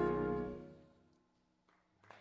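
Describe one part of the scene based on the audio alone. A big band plays a final loud chord that rings out.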